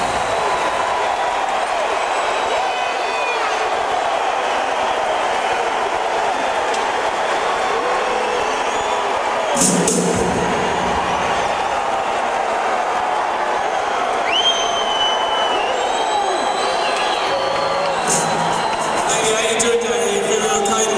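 A large crowd cheers and shouts in a big echoing arena.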